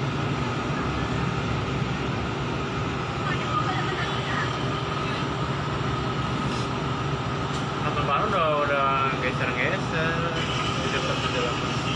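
A crowd of people murmurs and calls out in the street below, heard from a distance outdoors.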